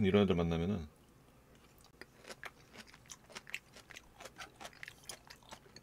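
A man chews and smacks food close to a microphone.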